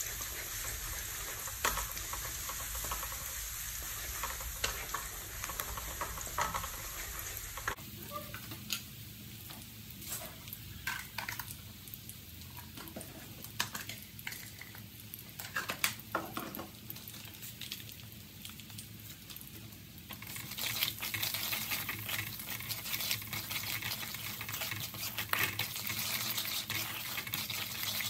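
Garlic sizzles in oil in a metal wok.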